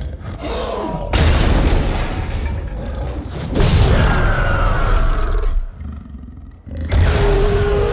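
A large mechanical creature roars loudly.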